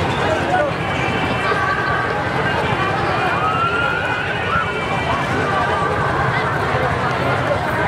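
A woman speaks through a microphone and loudspeakers.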